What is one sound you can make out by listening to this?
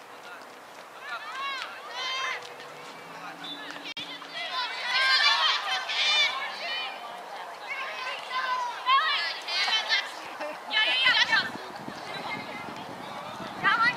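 Spectators shout and cheer loudly close by.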